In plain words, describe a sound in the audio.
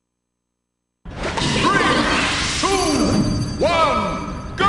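Game sound effects ring out with swooping rising and falling tones.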